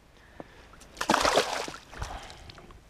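A fish splashes and thrashes at the water's surface close by.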